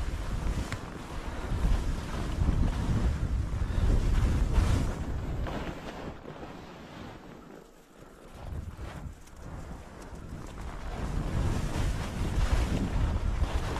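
Skis hiss and scrape over crusty snow.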